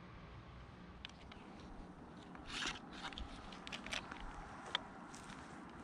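Light clicks and knocks sound as hands handle a small device.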